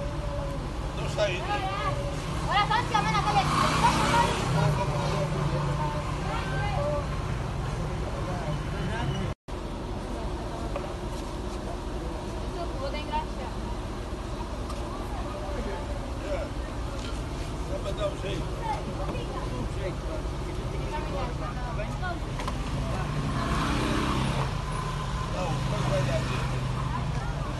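Several men talk loudly and excitedly outdoors, close by.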